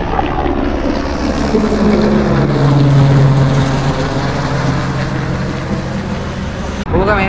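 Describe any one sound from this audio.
A helicopter flies low overhead, its rotor thudding loudly and then fading as it moves away.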